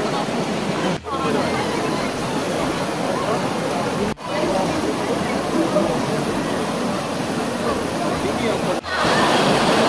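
A shallow stream babbles over rocks.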